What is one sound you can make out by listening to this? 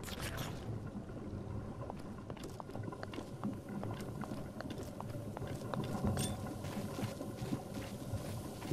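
Light footsteps patter over grass and rock.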